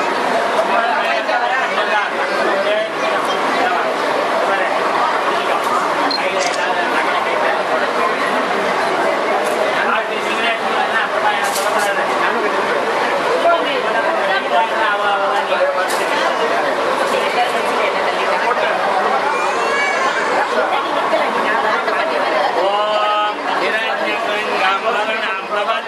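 A crowd of women and men chatter close by.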